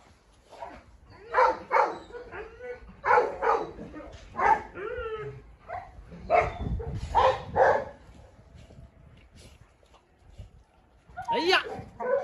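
Dogs yelp and growl as they play-fight.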